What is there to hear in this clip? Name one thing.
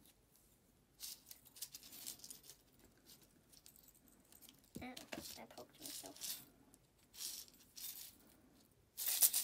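Plastic crinkles and clicks as a toy is handled.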